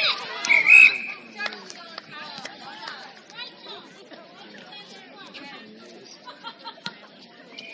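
Many young women call out and shout to each other outdoors.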